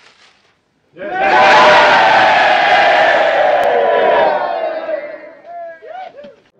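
A crowd of men cheers and laughs loudly.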